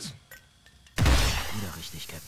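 A smoke grenade bursts with a sharp bang.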